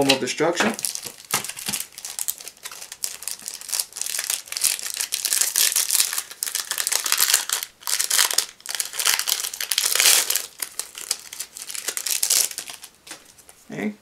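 A foil wrapper crinkles and tears open up close.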